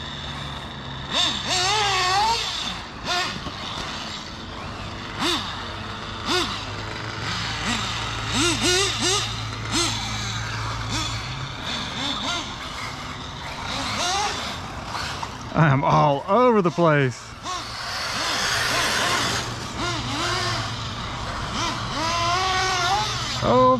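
A remote-control car's motor whines loudly, rising and falling in pitch as it speeds up and slows down.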